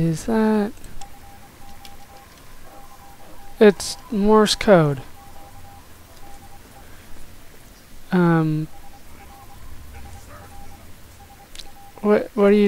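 A radio signal beeps in short, even pulses.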